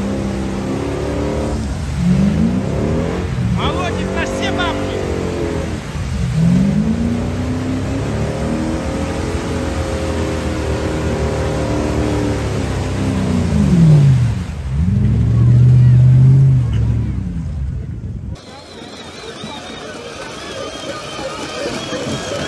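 An off-road vehicle's engine revs hard, rising and falling in pitch.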